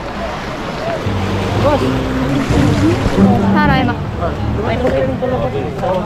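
Small waves wash over the stones at the shore.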